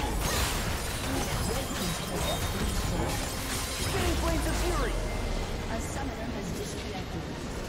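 Game spell effects crackle and clash in a busy battle.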